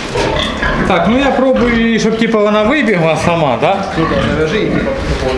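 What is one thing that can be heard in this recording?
A pig squeals loudly.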